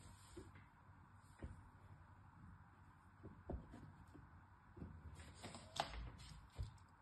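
Soap bars tap and slide against each other on a table.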